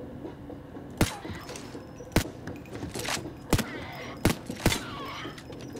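Gunshots ring out in sharp single cracks.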